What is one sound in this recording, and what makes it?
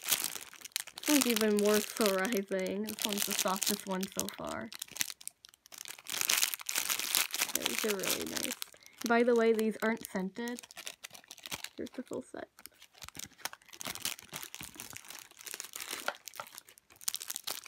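Plastic wrapping crinkles and rustles in handling.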